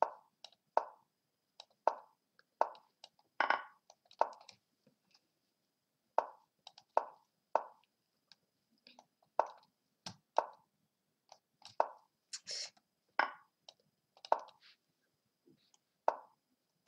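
Short wooden clicks of chess moves sound in quick succession.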